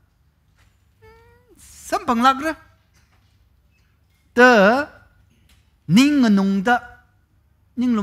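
A man sings with feeling into a close microphone.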